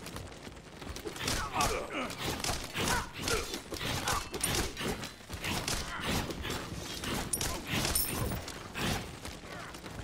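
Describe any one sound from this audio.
Game attacks zap and clash in quick bursts during a fight.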